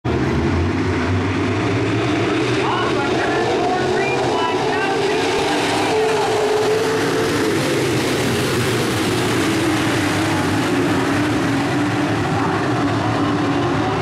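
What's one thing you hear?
Race car engines roar loudly and steadily.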